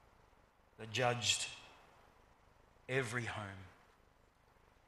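A middle-aged man speaks calmly into a microphone in a reverberant hall.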